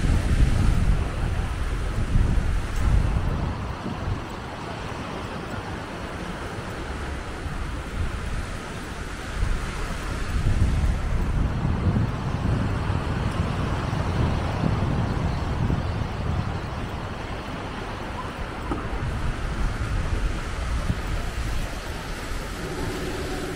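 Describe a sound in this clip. Small waves wash gently onto a beach nearby.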